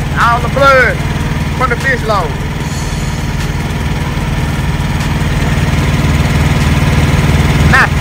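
A diesel truck engine idles with a steady low rumble close by.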